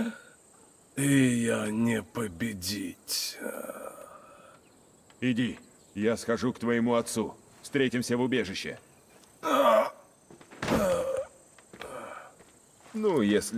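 A man speaks gravely and calmly, close by.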